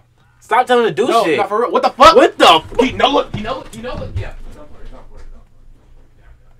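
A young man shouts and screams excitedly into a microphone.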